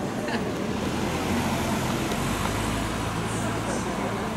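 A second car passes on the street.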